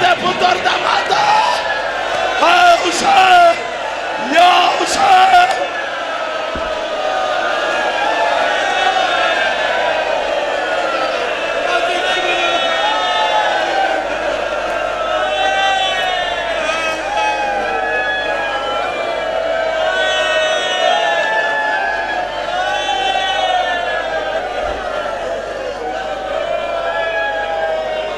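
A man chants a lament through a loudspeaker, heard in a large echoing hall.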